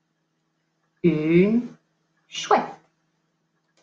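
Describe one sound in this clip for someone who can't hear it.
A woman speaks in a playful, high-pitched voice, close by.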